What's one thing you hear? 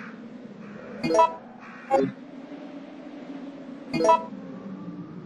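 Short electronic beeps chime one after another.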